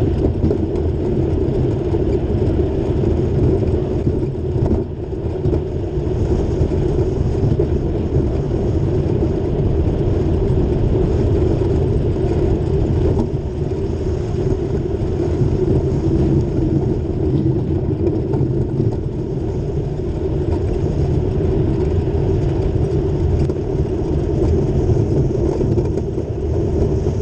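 Wind roars loudly and steadily past, close up.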